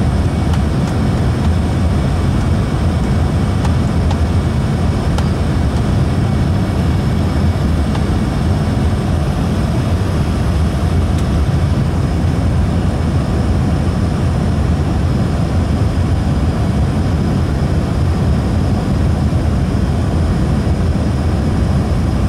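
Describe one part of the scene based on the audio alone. Air rushes loudly past a plane in flight.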